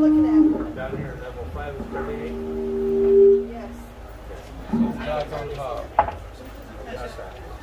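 Men and women chat in the background.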